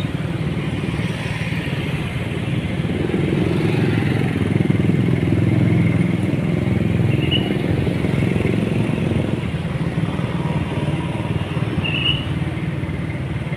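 Motorbike engines hum and buzz past on a busy street.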